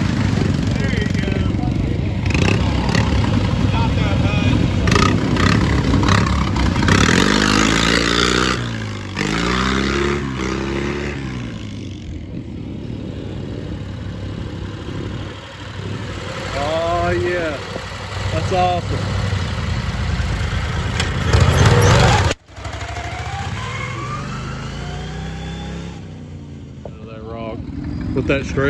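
A small engine roars and revs loudly up and down.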